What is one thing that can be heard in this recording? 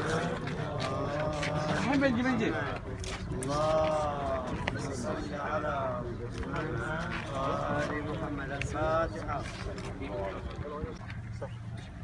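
A man recites a prayer aloud in a melodic chant nearby.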